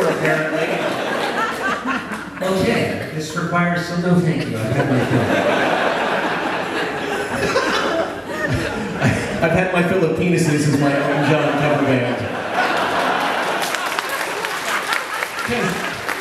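A man talks with animation into a microphone on a stage that echoes.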